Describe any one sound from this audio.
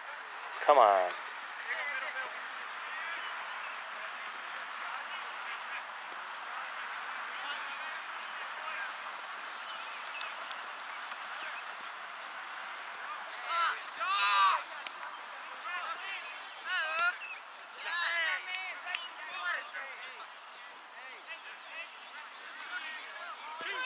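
Voices of men and women shout and call out across an open field at a distance.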